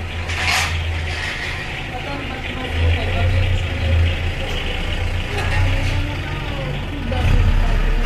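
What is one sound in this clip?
A younger woman talks and asks questions nearby.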